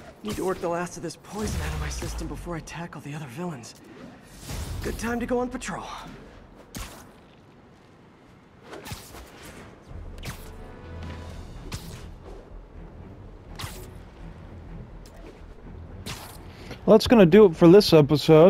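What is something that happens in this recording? Air whooshes past during fast swinging through the air.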